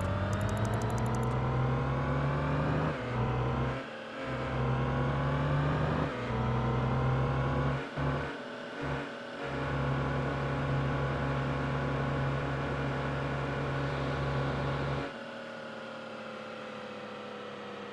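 A heavy truck engine drones and climbs in pitch through several quick gear changes, then quietens to a low idle hum.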